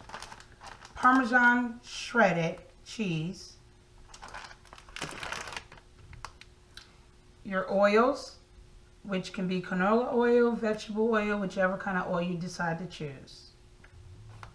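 A woman talks calmly and close by, in short phrases with pauses.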